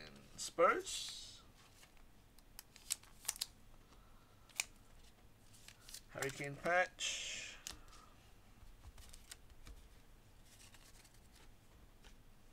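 A plastic card sleeve rustles and crinkles between fingers.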